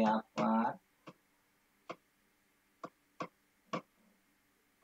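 A marker taps and scratches on a board.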